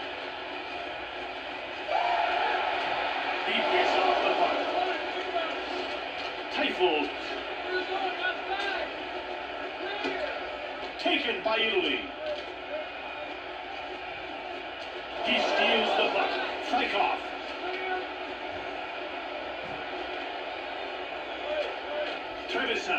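A crowd roars steadily through a television speaker.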